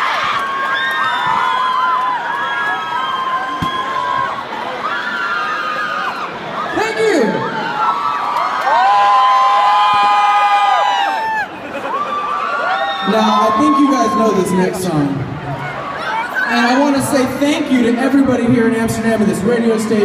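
A crowd sings along loudly.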